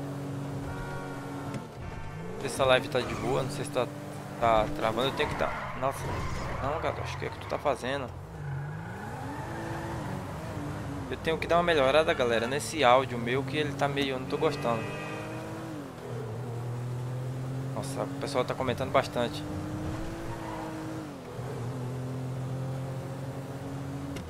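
A car engine hums and revs up and down throughout.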